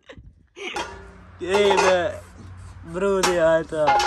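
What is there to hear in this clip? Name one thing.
Metal wheel rims clank against each other.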